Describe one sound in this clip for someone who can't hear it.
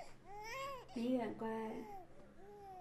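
A young woman speaks softly and soothingly.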